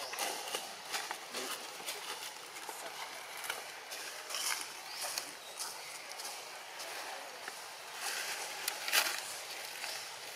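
Leaves rustle close by.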